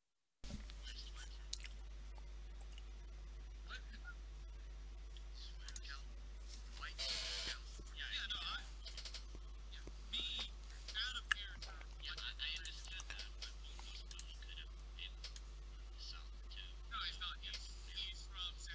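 Several men talk with one another over an online call, heard through headset microphones.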